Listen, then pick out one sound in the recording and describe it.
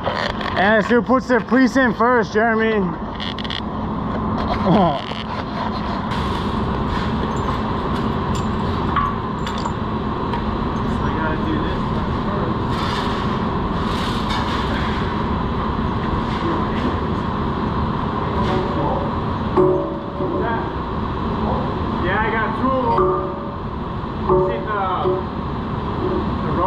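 Industrial machinery hums steadily and loudly.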